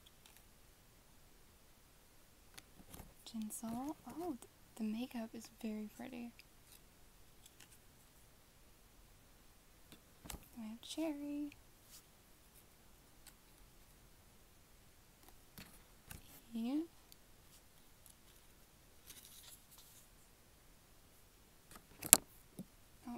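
Plastic cards tap and click softly as they are shuffled by hand.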